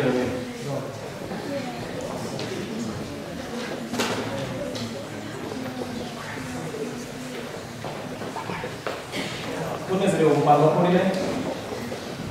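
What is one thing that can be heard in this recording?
A crowd of people murmurs and chats quietly.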